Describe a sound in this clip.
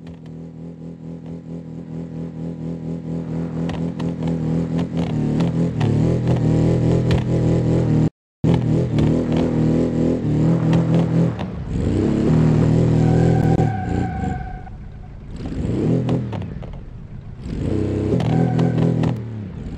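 A small car engine revs hard and roars, rising and falling.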